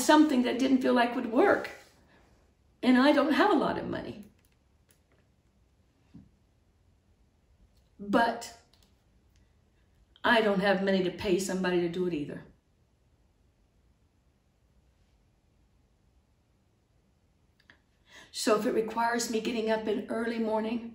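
A middle-aged woman speaks calmly and close by, with pauses.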